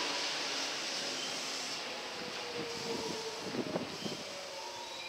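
Train brakes squeal faintly as the train comes to a stop.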